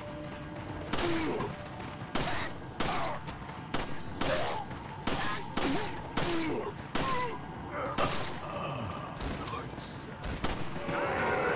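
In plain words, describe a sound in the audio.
Pistol shots crack one after another.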